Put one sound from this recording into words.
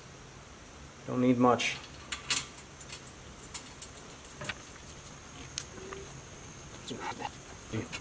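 Metal clicks faintly as a bolt is loosened by hand.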